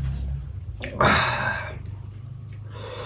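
Thick sauce plops out of a bowl onto a plate.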